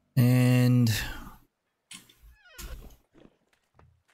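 A wooden chest lid thumps shut.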